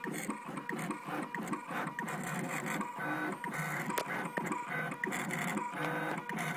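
An engraving machine buzzes and whines as it cuts into anodized aluminum.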